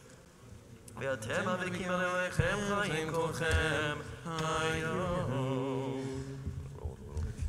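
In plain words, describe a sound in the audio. An elderly man chants in a singing voice into a microphone.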